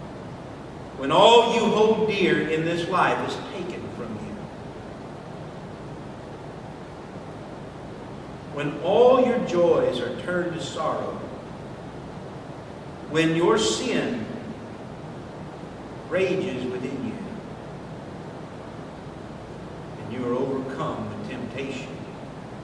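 A man speaks calmly into a microphone, with long pauses.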